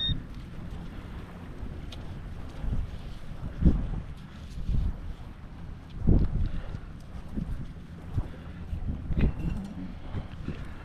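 A small trowel scrapes through sand.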